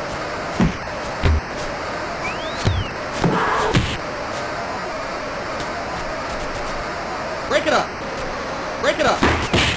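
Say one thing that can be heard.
Punches thud in a video game boxing match.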